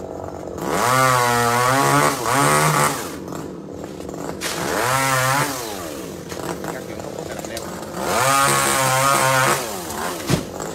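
A chainsaw engine revs up and down in loud bursts.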